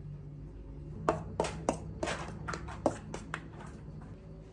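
A metal bowl clinks as it is tipped and scraped.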